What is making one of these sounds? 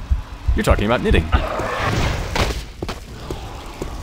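A fireball bursts with a whoosh.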